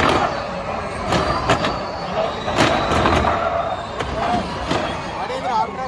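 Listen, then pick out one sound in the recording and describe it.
Electric race cars whine past at high speed.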